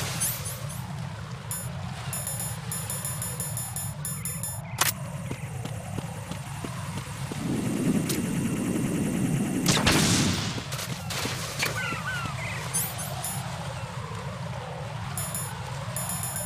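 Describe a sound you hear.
Short electronic beeps click as menu items are scrolled.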